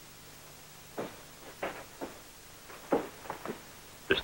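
Footsteps tap on a wooden porch.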